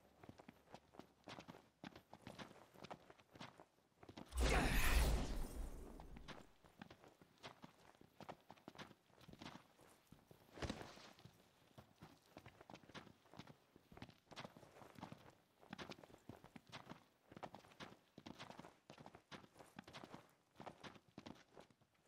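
Footsteps scrape and tap on rock.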